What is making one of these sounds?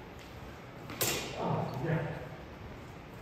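A man calls out briefly in an echoing hall.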